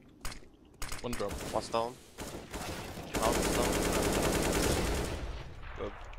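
Gunshots crack from a rifle.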